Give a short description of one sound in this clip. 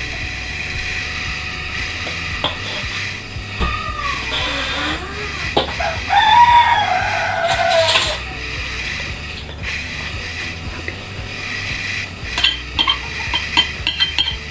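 A metal spoon clinks and scrapes against a plate.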